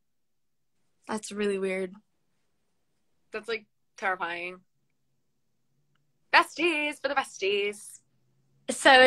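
A young woman speaks briefly over an online call, in short bursts.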